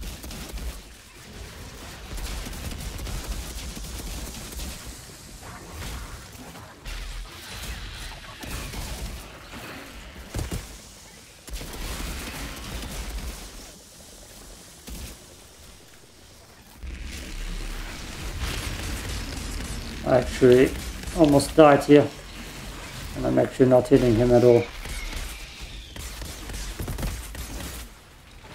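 Rapid gunfire and blasts ring out.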